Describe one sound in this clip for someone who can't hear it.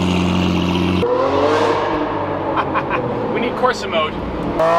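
A sports car engine revs as the car accelerates.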